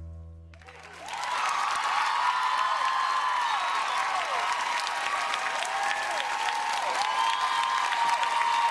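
A large audience cheers loudly.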